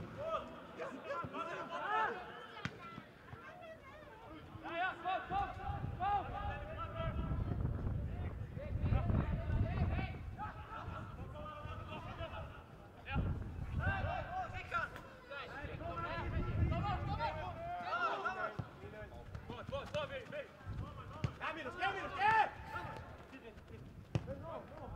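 Young men shout to each other across an open football pitch.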